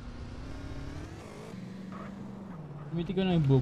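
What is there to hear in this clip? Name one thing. A motorbike engine hums and revs slightly.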